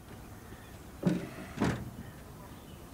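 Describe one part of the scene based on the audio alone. A wooden door bangs open.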